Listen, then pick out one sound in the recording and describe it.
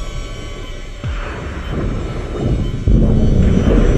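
Jet thrusters hiss and roar in short bursts.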